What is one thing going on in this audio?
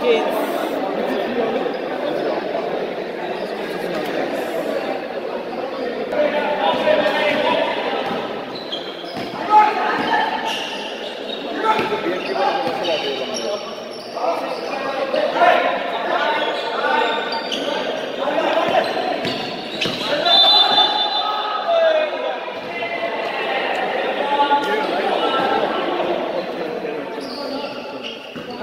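A crowd of young spectators murmurs and chatters in an echoing hall.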